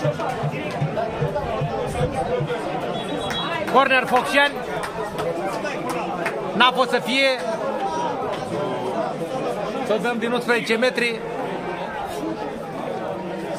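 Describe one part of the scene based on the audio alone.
A crowd of spectators chatters and murmurs outdoors.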